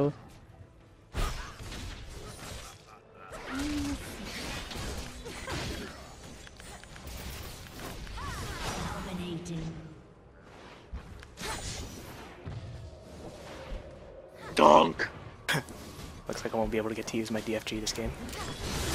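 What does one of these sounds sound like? Magic spells crackle and boom as game characters fight.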